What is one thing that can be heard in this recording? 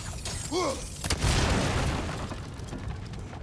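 A barrel explodes with a loud roaring blast.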